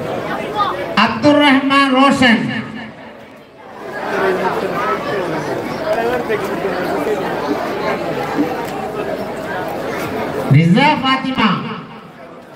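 A crowd of men chants and shouts together.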